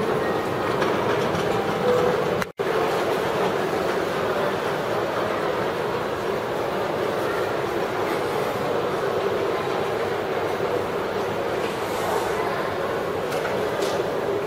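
Voices murmur and chatter in a large, echoing indoor space.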